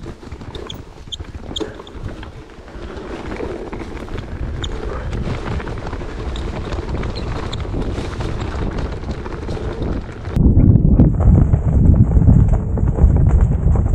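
A bicycle frame rattles and clicks over bumps.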